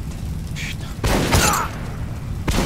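A gunshot fires sharply.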